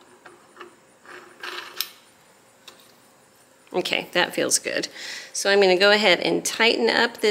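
A sewing machine's handwheel turns with faint clicking.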